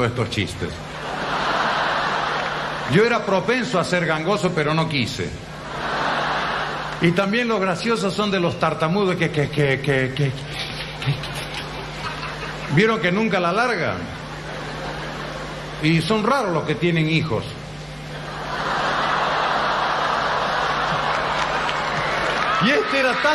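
An audience laughs loudly in a large hall.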